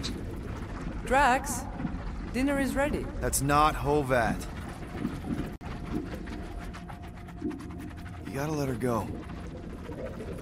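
A young man speaks with surprise.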